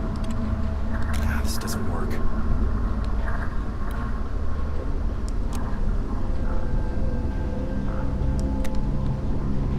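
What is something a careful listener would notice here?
A young woman talks quietly into a microphone.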